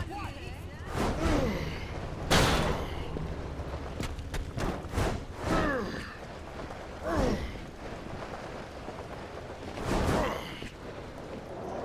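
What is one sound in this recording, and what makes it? Heavy whooshing bursts sound as a figure leaps and dashes through the air.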